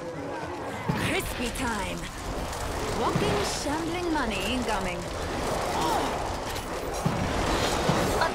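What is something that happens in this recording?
A flamethrower roars in steady bursts.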